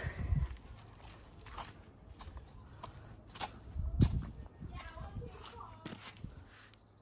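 Footsteps tread on a paved path outdoors.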